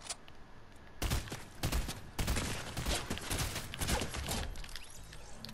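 Rapid gunshots crack in quick bursts.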